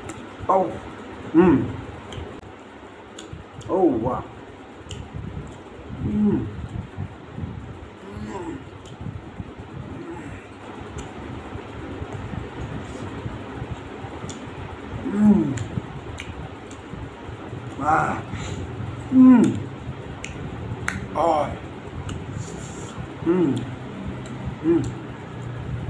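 A man chews food noisily, close to the microphone.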